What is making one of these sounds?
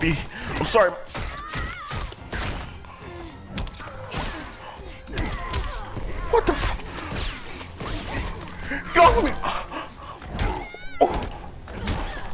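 A man exclaims loudly and excitedly into a microphone.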